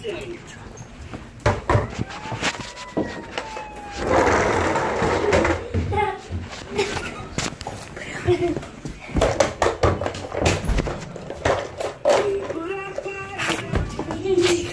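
A boy talks and shouts excitedly close by.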